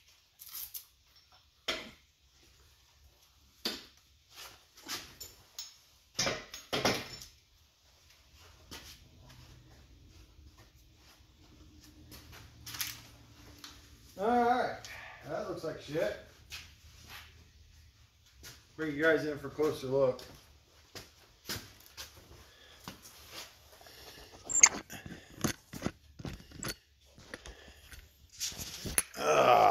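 Metal parts clank and rattle nearby.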